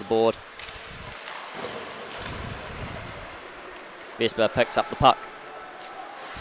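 Ice skates scrape and glide across an ice rink in a large echoing arena.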